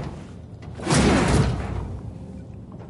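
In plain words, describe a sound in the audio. Footsteps drop onto a hard floor.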